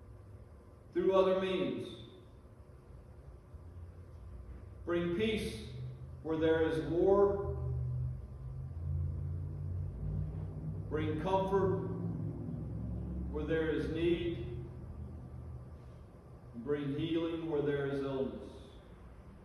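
An elderly man speaks calmly into a microphone in short phrases, heard through a loudspeaker in an echoing hall.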